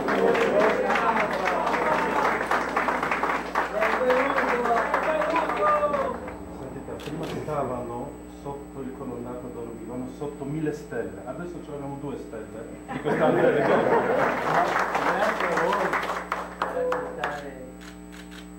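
Several people talk at once close by, loud and lively.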